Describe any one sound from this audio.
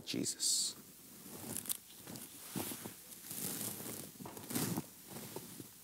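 Book pages rustle and thump close by.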